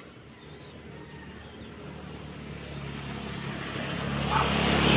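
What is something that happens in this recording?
A motorbike engine approaches and grows louder.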